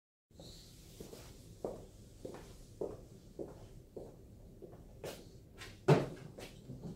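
Footsteps walk across a wooden floor.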